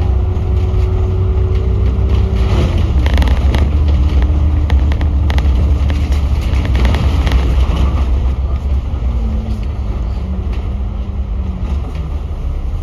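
A bus engine whines, shifting in pitch as it changes gear.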